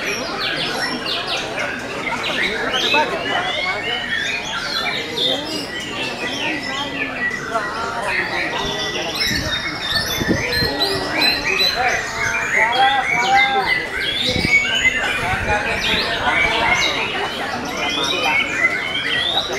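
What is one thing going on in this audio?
A caged songbird sings rapid, varied chirping phrases.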